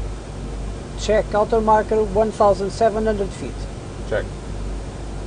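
A man speaks briefly and calmly through a headset microphone.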